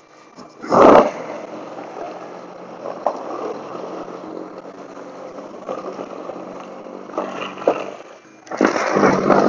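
Snow scrapes and blows from a snow blower.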